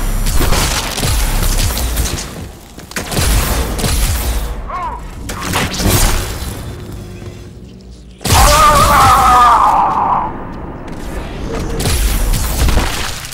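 A plasma gun fires rapid bursts.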